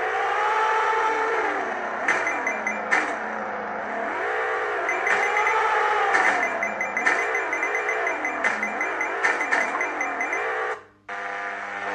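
A game car engine revs up and down.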